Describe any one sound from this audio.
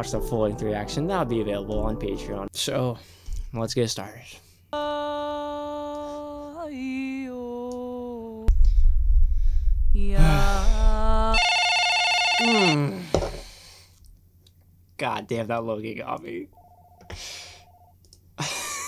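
A young man talks casually and close into a microphone.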